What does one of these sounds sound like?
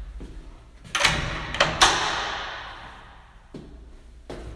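A toilet flushes with a loud rushing gush.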